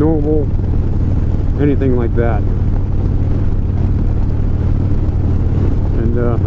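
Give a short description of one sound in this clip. A motorcycle engine rumbles steadily at cruising speed.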